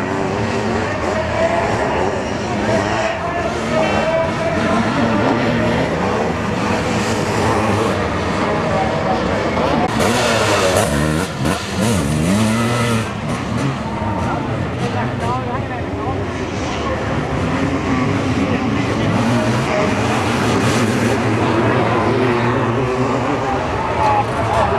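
Sidecar motocross bikes race past at full throttle on dirt.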